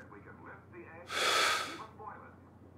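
A woman blows out a candle with a short puff.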